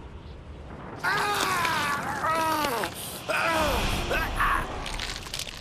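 A young man cries out in pain.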